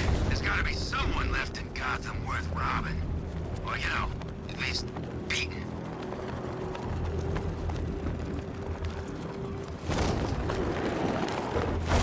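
Wind rushes steadily past a gliding cape.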